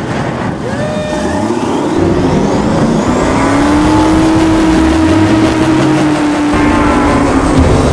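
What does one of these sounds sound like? An airboat's engine revs up and its pitch climbs.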